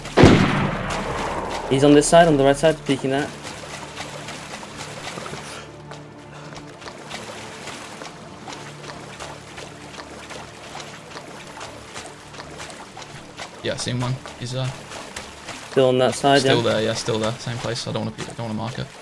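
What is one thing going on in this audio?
Water splashes softly as a swimmer moves through it.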